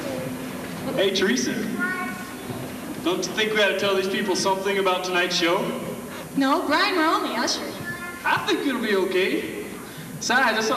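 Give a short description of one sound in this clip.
A man sings into a microphone in a large echoing hall.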